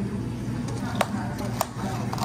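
Plastic cups knock lightly on a metal counter.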